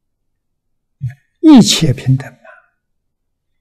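An elderly man speaks calmly and briefly into a microphone.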